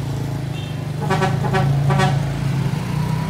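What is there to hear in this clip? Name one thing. A bus horn sounds a few short musical blasts.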